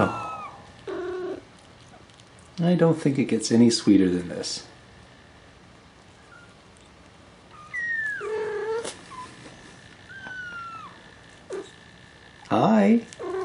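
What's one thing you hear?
Kittens mew in thin, high squeaks.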